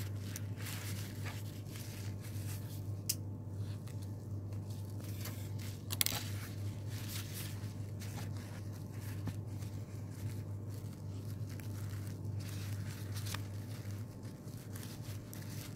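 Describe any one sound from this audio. Paper rustles and crinkles softly as it is handled.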